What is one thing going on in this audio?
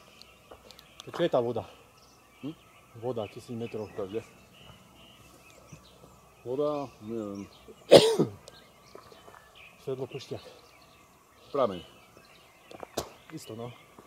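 A man talks in short bursts nearby.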